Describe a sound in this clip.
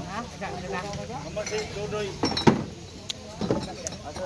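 Glass bottles clink in a crate.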